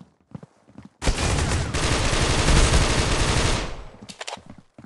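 A rifle fires a long rapid burst.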